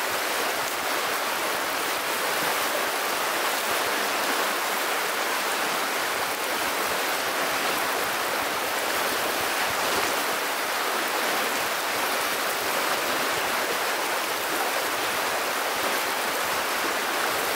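A shallow river rushes steadily over stones close by.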